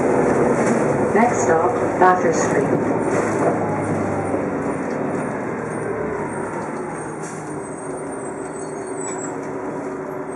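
A bus engine rumbles steadily from inside the vehicle.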